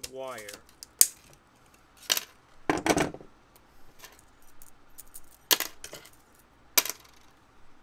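Small metal parts click and clink in hands.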